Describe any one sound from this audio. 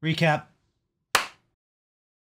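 A young man claps his hands.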